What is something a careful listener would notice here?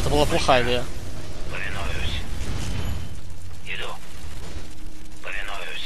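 Explosions rumble low and steady in a battle.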